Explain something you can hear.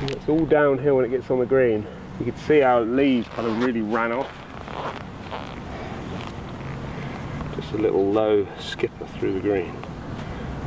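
A man talks calmly and clearly to the listener close by, outdoors.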